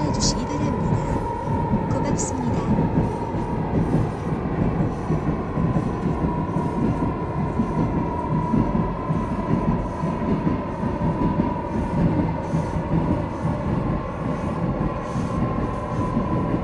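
A train's motor hums with a steady whine.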